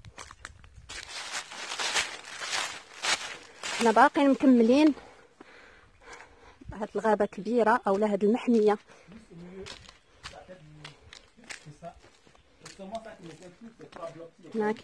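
Footsteps crunch and rustle on dry leaves and rock.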